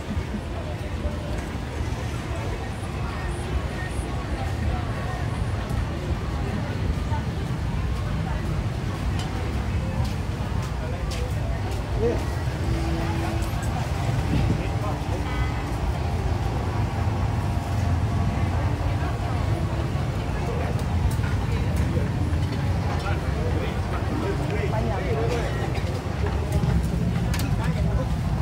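A crowd of people chatters at a busy outdoor market.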